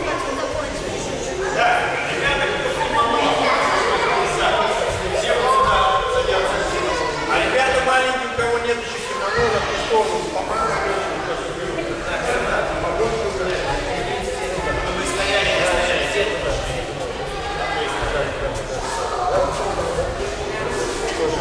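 Many children and adults chatter at once in a large echoing hall.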